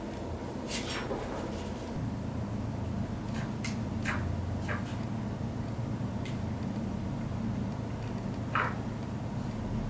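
Pliers click against a small metal tube.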